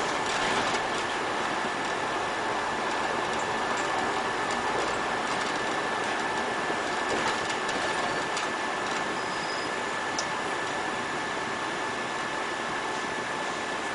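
A diesel city bus drives along a road.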